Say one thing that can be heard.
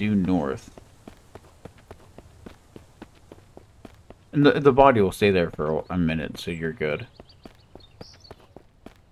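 Footsteps crunch steadily through dry grass.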